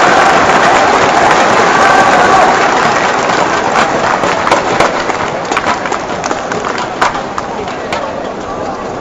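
A large crowd cheers and chatters in an echoing hall, then quiets down.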